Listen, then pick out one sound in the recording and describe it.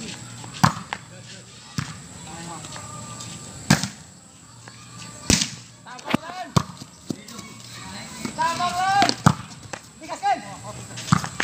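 A ball is struck sharply and repeatedly outdoors.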